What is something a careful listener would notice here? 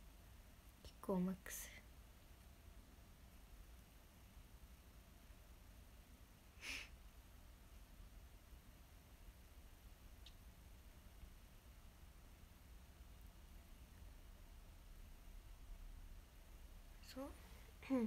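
A young woman speaks briefly and softly, close to a microphone.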